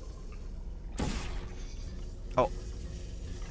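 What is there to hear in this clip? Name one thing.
A futuristic gun fires with a sharp, whooshing zap.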